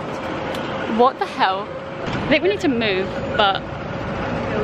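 A young woman speaks up close.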